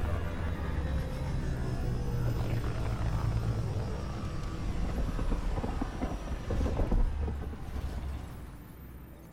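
A spacecraft's engines hum and roar as the craft glides in to land.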